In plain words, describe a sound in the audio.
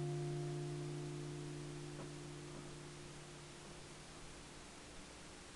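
An acoustic guitar chord rings out and slowly fades away.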